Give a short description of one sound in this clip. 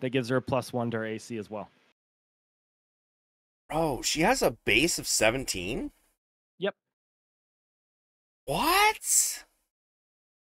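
A young man speaks with animation, close to a microphone, in short bursts.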